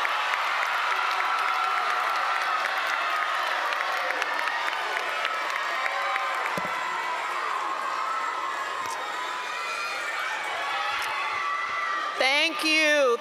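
A large crowd cheers in a large hall.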